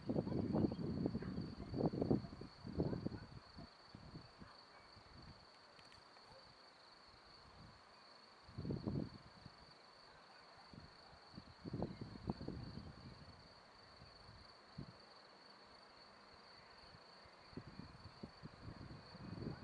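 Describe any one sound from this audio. A jet airliner whines steadily as it approaches to land.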